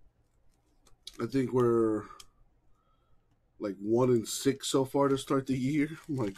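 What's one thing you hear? Plastic wrapping crinkles and tears under fingers.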